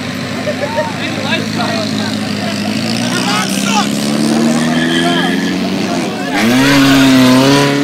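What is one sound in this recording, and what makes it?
An engine revs hard and climbs in pitch, then roars louder.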